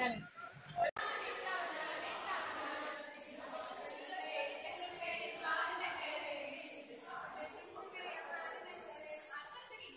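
A group of young women sing and chant together in an echoing room.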